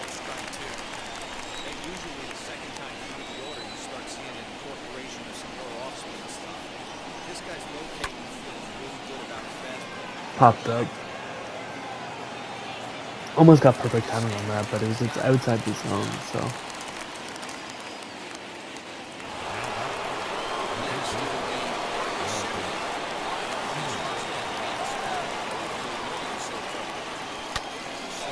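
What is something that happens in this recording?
A large stadium crowd murmurs steadily, then swells louder.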